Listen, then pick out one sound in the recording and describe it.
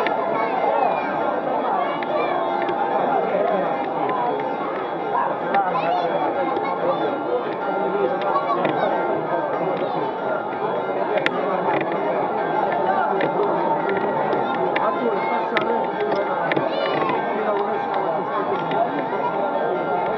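Men shout close by.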